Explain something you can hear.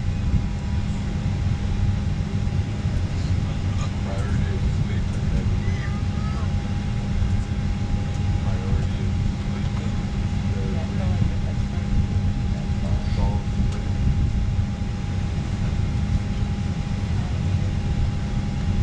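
A plane's engines roar in a steady, low drone.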